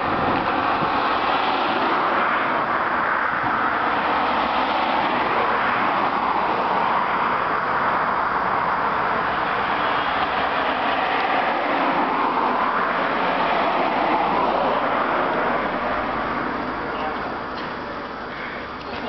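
Traffic roars steadily past on a busy road, then fades.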